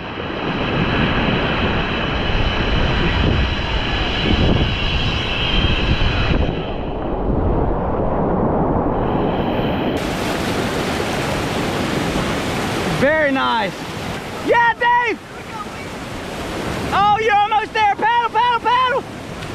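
Whitewater rushes and churns loudly close by.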